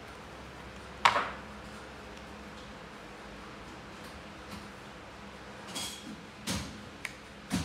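A monkey handles food in a bowl with soft clatters.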